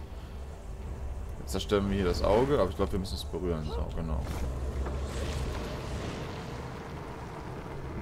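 A magical orb bursts with a deep, roaring rumble.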